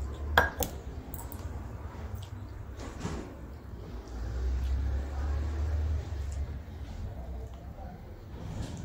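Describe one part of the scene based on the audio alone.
A young woman chews and slurps food close by.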